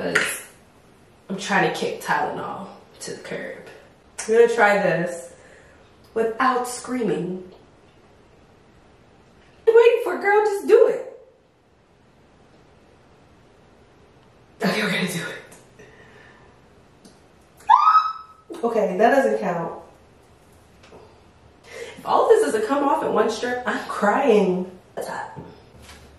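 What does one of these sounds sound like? A young woman talks calmly and cheerfully close by, in bursts with pauses.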